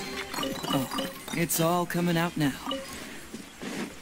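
A chest opens with a bright magical chime.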